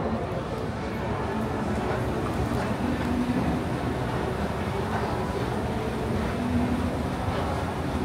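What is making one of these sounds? An escalator hums and rumbles steadily as it moves.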